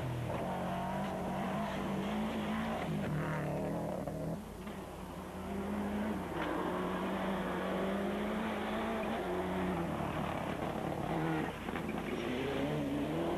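A rally car engine roars at high revs, shifting gears.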